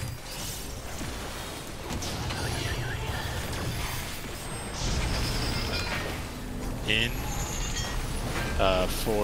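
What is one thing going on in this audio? Magic spells crackle and boom in a game battle.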